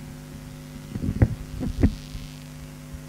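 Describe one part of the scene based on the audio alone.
A microphone thumps and bumps as it is handled.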